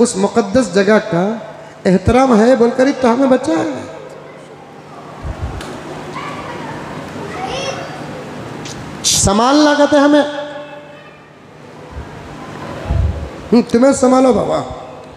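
An elderly man preaches with animation through a microphone.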